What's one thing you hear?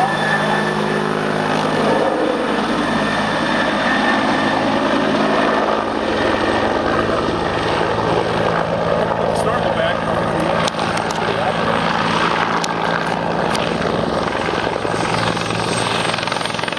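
A helicopter's rotor thumps and roars steadily overhead.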